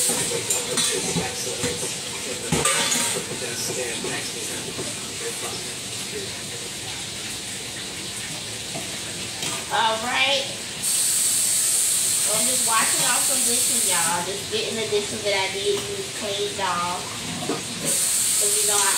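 Food sizzles in a frying pan, now and then rising into a louder hiss.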